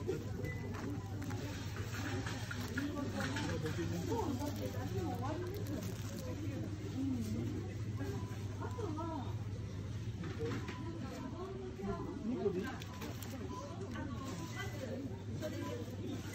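Plastic packaging rustles and crinkles as a hand handles it.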